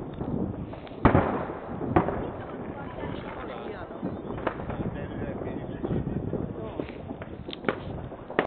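Fireworks bang and crackle in the distance.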